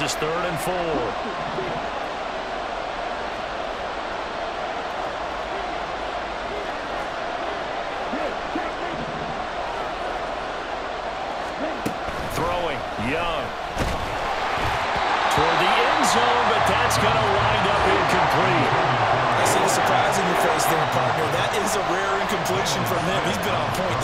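A large stadium crowd murmurs steadily, then swells into a loud roar.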